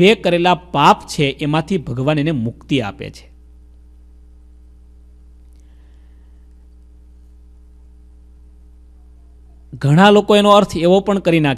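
A man speaks calmly into a microphone, close by, with long pauses.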